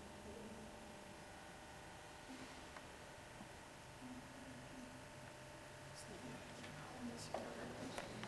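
A paintbrush dabs softly on canvas.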